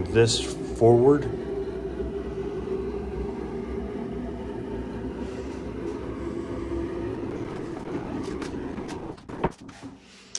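A carriage slides along metal rods with a low, steady rumble.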